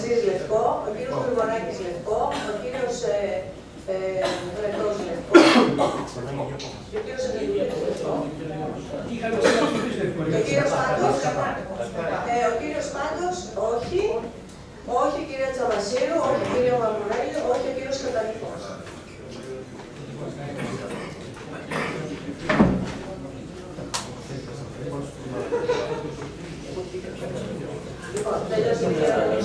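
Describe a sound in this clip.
A man speaks steadily into a microphone in a room with some echo.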